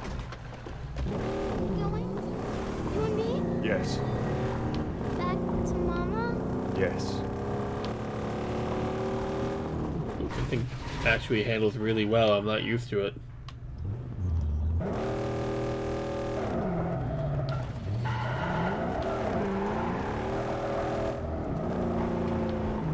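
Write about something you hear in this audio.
A vehicle engine hums and revs up and down.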